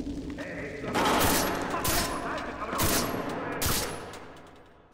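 Rifle shots ring out sharply, several in quick succession.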